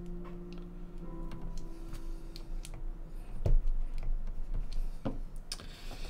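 Keycaps click and snap as they are pressed onto a keyboard.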